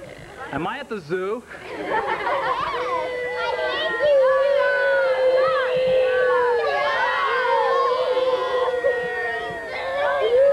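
A large group of children and adults chatters and calls out at once outdoors.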